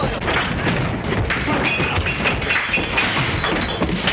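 Fists land with sharp thuds.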